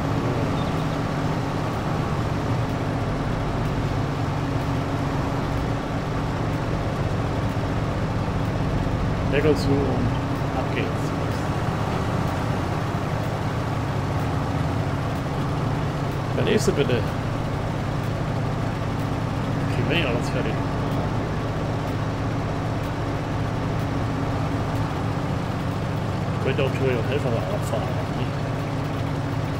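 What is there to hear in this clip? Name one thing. A harvester engine drones steadily.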